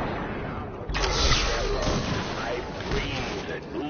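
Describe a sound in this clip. A loud explosion booms and crackles.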